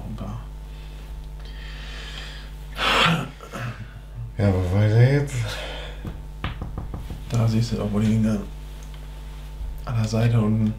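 Small plastic bricks click and rattle as hands handle them.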